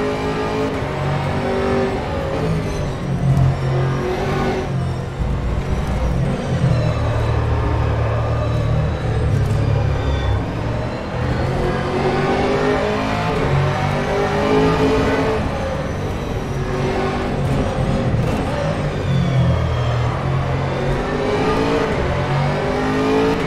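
A racing car engine roars loudly, revving up and down through the gears.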